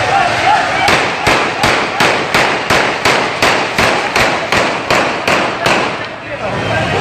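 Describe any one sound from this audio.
Firecrackers bang in rapid series.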